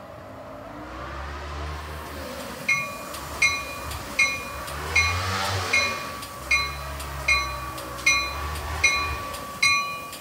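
A train rolls slowly along the tracks with a low rumble.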